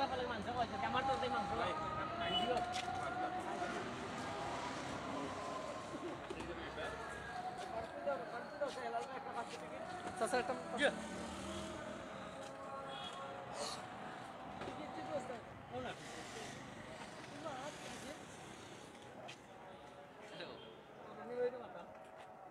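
Metal dishes clink as a vendor serves food.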